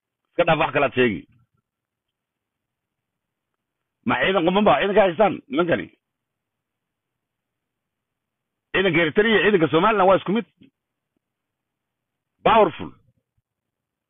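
An older man talks cheerfully and close up, in short bursts with pauses.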